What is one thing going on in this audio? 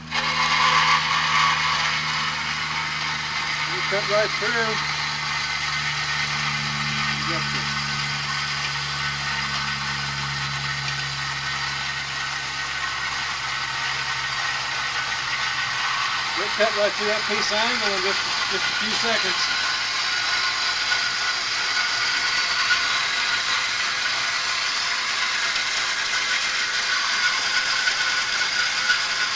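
A motor-driven machine hums and rattles steadily.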